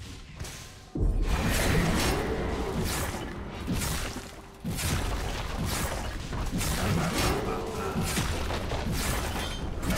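Spell blasts and weapon hits crackle and thump in a fast video game battle.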